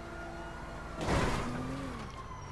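A car crashes hard onto the ground.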